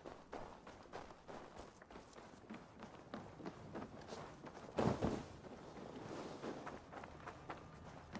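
Footsteps crunch on snow and gravel.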